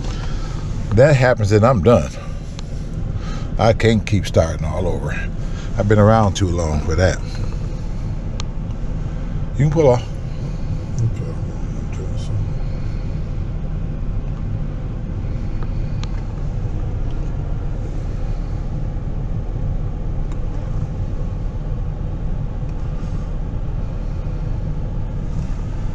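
A car engine idles with a low, steady hum.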